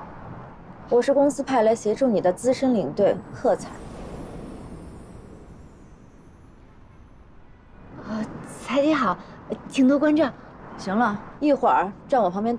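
A second young woman answers in a cool, even voice up close.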